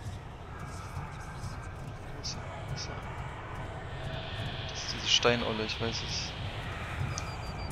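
Footsteps scrape and shuffle slowly across roof tiles.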